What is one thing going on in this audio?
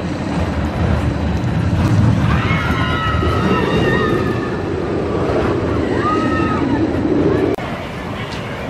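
A roller coaster train rumbles loudly along its track close by.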